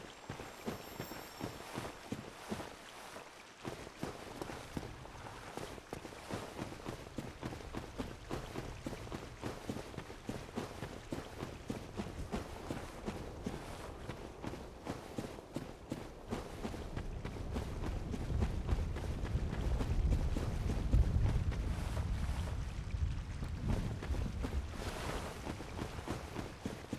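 Armored footsteps thud quickly on soft ground.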